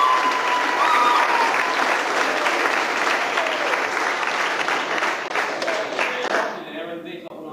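A crowd applauds loudly in an echoing hall.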